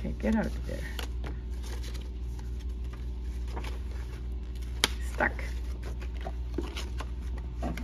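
Card sheets slide and tap against each other.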